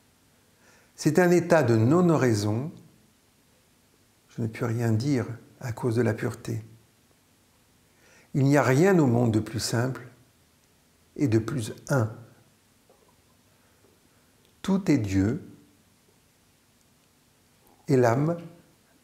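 An older man speaks calmly and slowly, close by, with pauses between phrases.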